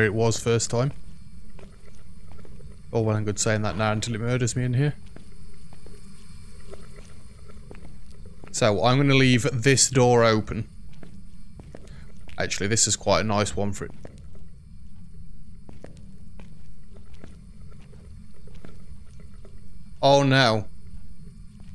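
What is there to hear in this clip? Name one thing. A man talks calmly into a microphone in short bursts.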